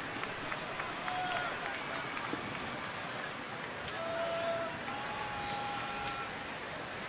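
A large crowd murmurs and calls out steadily in an open stadium.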